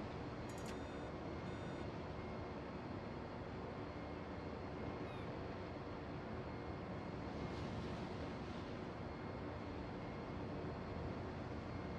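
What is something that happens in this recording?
A warship's engines rumble steadily as the bow cuts through the sea.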